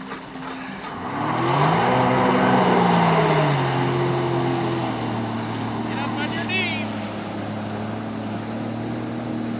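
Jet ski engines rev and roar across open water, rising in pitch as they speed away.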